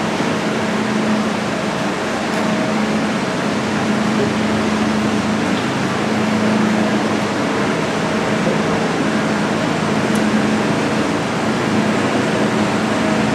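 A funicular car rumbles and hums steadily as it rolls along its track.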